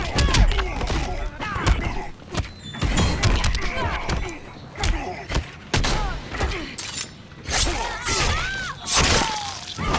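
Heavy blows land again and again with loud, punchy thuds and smacks.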